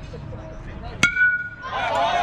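A metal bat cracks sharply against a ball.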